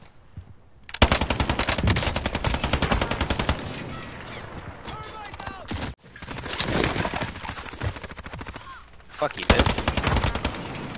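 Automatic rifle fire rattles in a video game.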